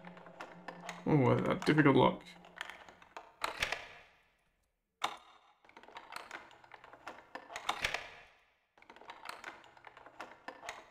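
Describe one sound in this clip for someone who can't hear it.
Metal lockpicks click and scrape inside a door lock.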